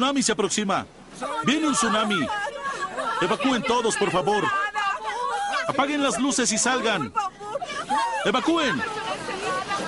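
A woman shouts urgently close by.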